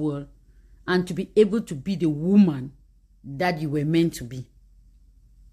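A woman speaks calmly and close up.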